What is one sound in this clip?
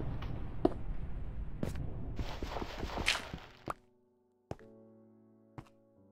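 Stone blocks are placed with short dull knocks.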